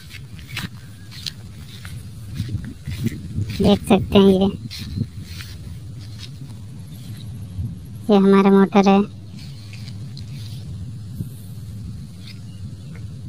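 Wind rustles through tall grass outdoors.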